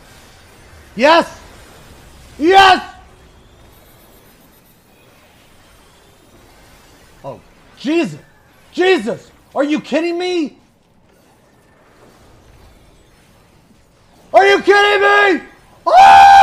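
A man speaks in short, lively bursts close to a microphone.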